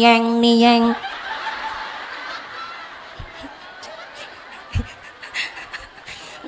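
A crowd of women laughs and murmurs.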